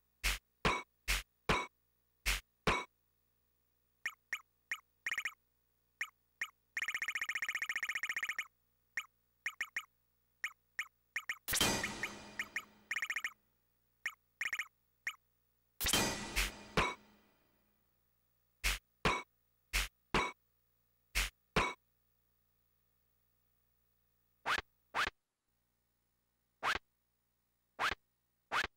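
Short electronic blips sound over and over.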